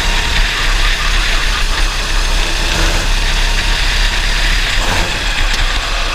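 A racing kart engine screams at full throttle.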